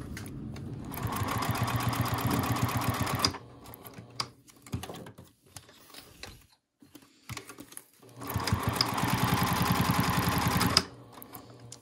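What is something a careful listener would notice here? A sewing machine stitches in rapid bursts.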